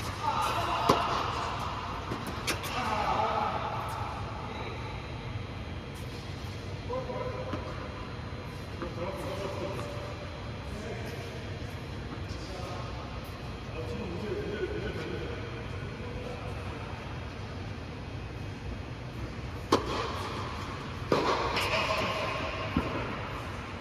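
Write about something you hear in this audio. Tennis balls are struck with rackets with sharp pops that echo in a large hall.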